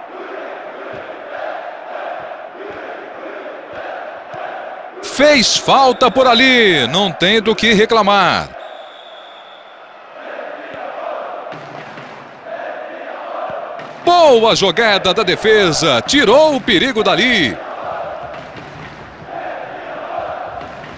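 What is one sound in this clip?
A stadium crowd murmurs and cheers steadily in the distance.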